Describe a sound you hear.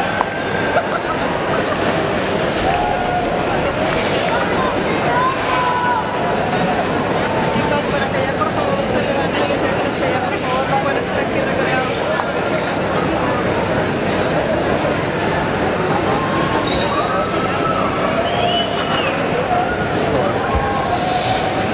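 A band plays loud rock music with electric guitars and drums.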